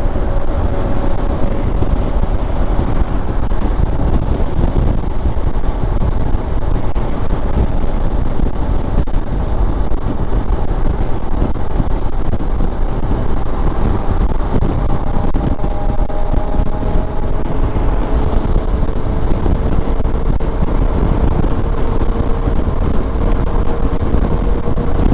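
Wind rushes loudly past a motorcycle rider at speed.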